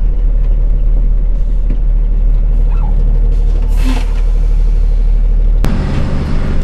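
Tyres roll over a muddy road.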